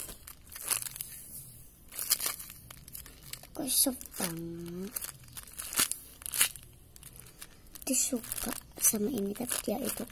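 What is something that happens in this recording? A plastic bag crinkles in a hand.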